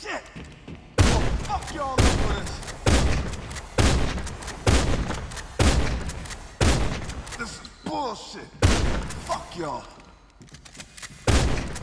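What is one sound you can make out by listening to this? Gunshots fire in rapid bursts, loud and close.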